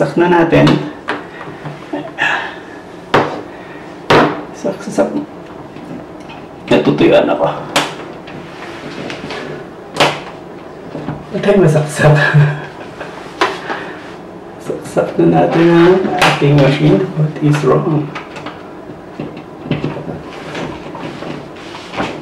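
Plastic clicks and knocks sound as a kettle and a coffee machine are handled.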